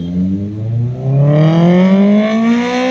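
A motorcycle engine revs up sharply.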